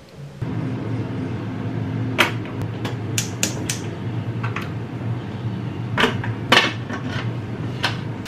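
A metal pot clanks on a stove.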